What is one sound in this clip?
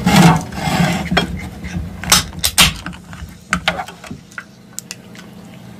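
A can is tapped and handled with sharp clicks.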